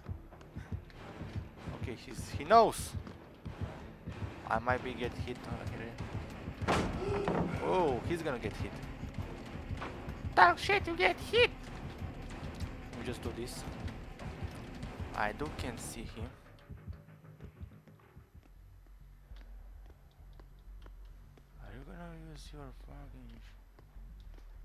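Footsteps run quickly over a hard floor.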